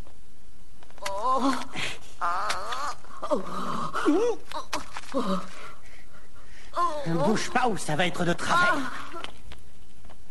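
A man talks with glee close by.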